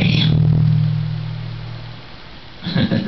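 An electric guitar chord rings out and fades.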